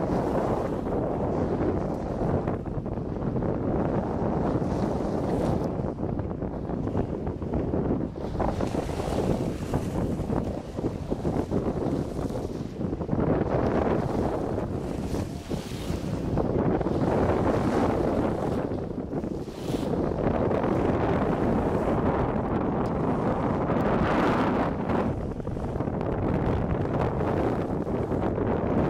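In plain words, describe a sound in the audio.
Water rushes and splashes along a moving boat's hull.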